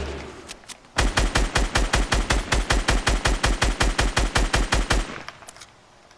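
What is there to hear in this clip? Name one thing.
A rifle fires rapidly in a long burst.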